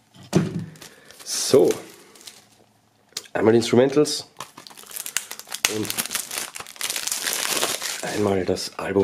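Plastic wrapping crinkles and tears as it is pulled off.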